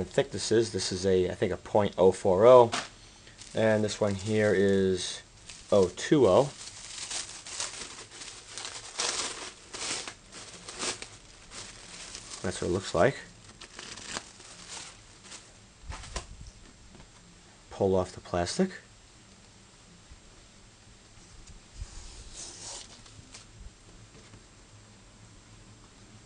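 A thin plastic sheet rustles and flexes in the hands.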